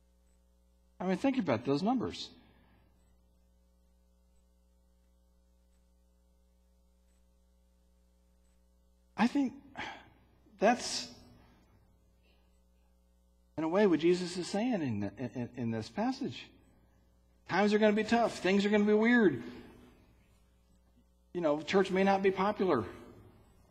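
A man speaks calmly through a microphone in an echoing hall, with long pauses.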